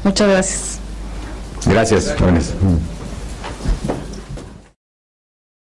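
A middle-aged man speaks into a microphone, calm and friendly.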